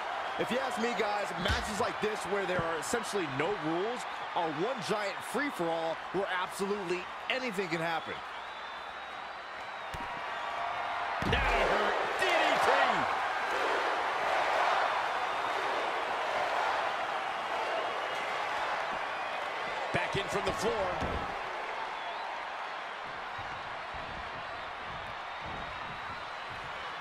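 A crowd cheers loudly in a large arena.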